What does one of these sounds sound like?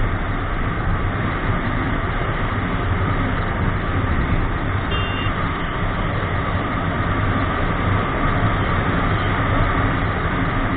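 Wind rushes and buffets loudly against a moving motorcycle.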